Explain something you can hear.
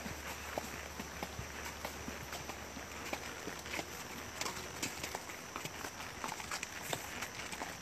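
Horse hooves thud steadily on a dirt path.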